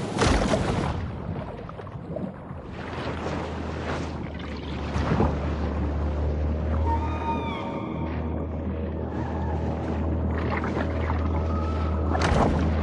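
A deep muffled underwater rumble drones steadily.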